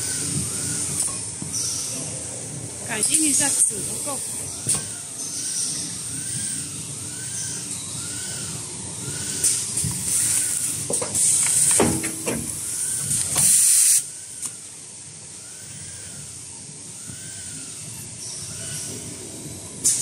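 A packing machine hums and clatters steadily.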